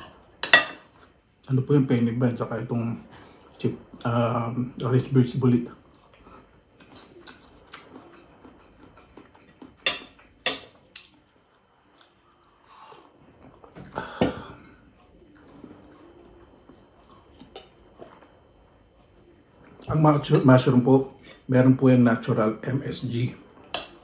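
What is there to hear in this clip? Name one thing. A spoon and fork clink against a plate.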